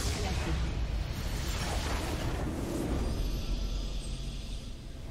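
A structure explodes with a loud rumbling blast.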